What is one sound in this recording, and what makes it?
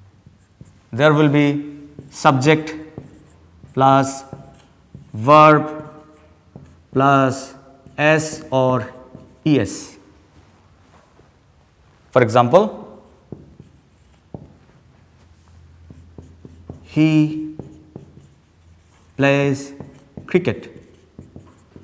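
A man speaks slowly and clearly into a close microphone, pausing often.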